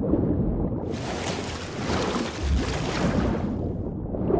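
Water splashes as a person drops into it.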